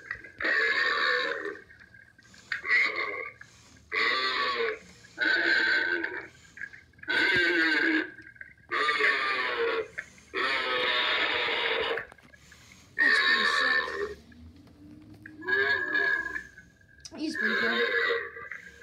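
An animated skeleton figure talks in bursts of a deep, menacing voice through a small loudspeaker.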